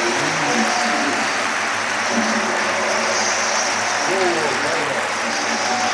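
An audience claps.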